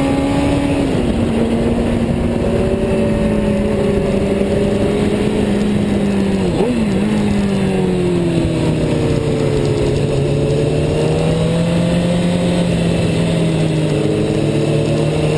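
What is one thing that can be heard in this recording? A motorcycle engine drones steadily up close, its pitch rising and falling.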